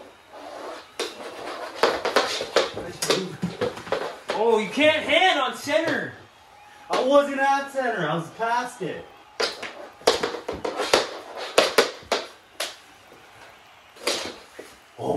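A ball knocks on a wooden floor.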